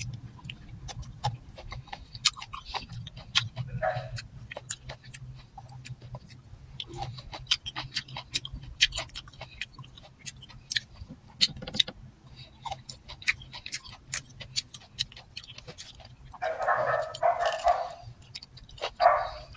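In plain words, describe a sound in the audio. A young woman chews and crunches food close by.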